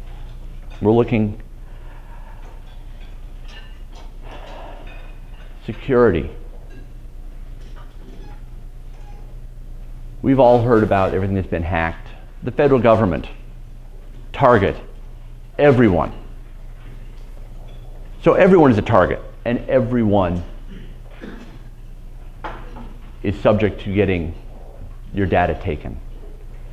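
A man speaks calmly through a microphone, with pauses, in a room with a slight echo.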